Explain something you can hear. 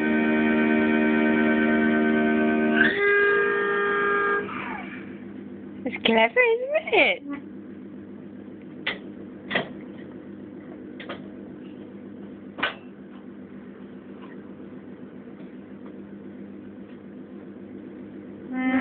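A toddler presses keys on a toy organ, sounding held reedy chords.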